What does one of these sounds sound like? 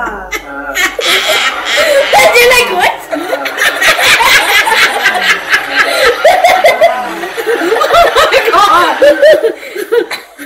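A middle-aged woman laughs loudly close by.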